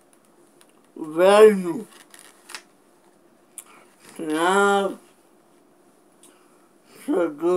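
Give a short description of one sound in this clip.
A man chants melodically close by, in long sung phrases with pauses between.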